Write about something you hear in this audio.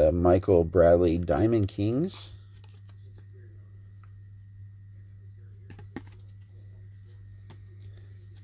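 Stiff cards slide and tap against each other in hands.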